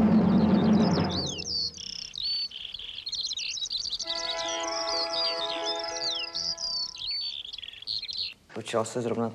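Birds chirp and call.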